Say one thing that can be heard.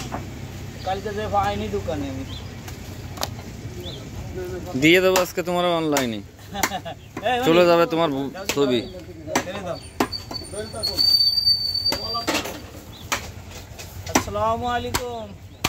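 Men talk nearby in a lively way.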